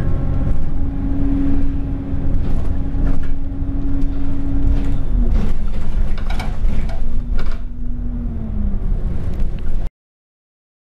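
Loose fittings rattle and knock inside the bus.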